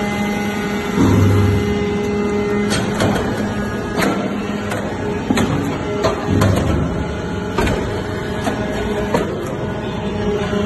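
A hydraulic press thumps and clanks as it presses metal.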